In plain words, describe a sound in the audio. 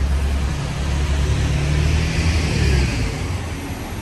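A bus engine rumbles loudly as a bus pulls past close by.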